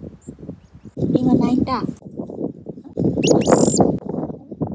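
A small bird chirps sharply close by.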